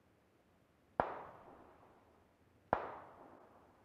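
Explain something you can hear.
Single gunshots crack and echo.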